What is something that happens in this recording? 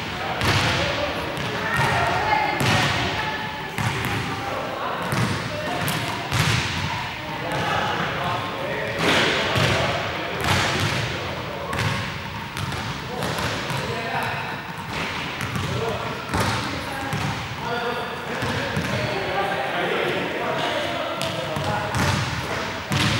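Young people talk in a large echoing hall.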